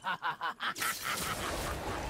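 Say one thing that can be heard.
Electricity crackles and zaps.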